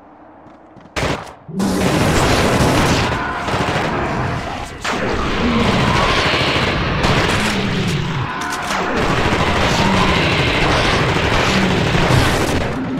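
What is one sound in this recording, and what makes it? Gunfire rattles loudly in rapid bursts.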